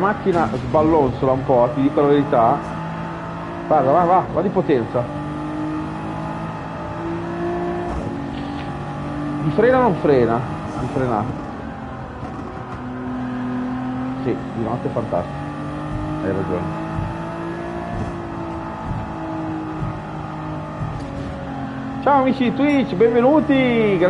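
A racing car engine hums and whines steadily, shifting pitch as it speeds up and slows.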